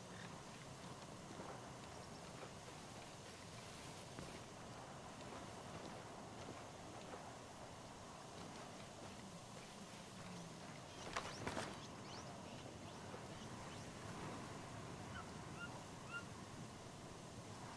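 Footsteps rustle through low plants.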